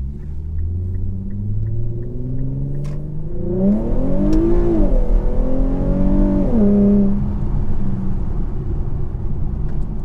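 Tyres roll over a road with a steady rumble.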